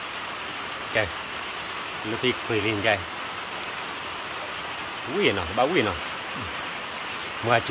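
A boy talks casually nearby.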